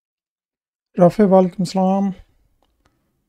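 A young man speaks briefly into a close microphone with animation.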